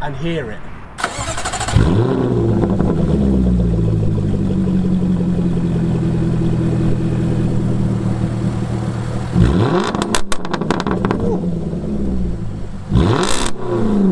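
A sports car exhaust pops and crackles sharply.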